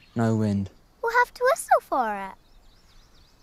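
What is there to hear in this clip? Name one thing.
A young girl speaks softly, close by, her voice rising and falling.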